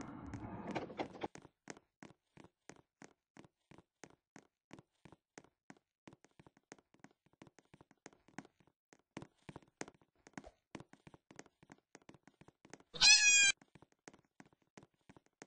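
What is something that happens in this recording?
Quick footsteps patter steadily.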